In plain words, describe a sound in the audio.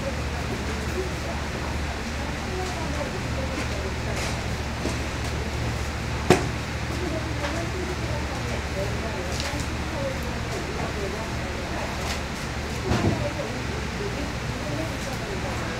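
A knife slices through raw meat on a cutting board.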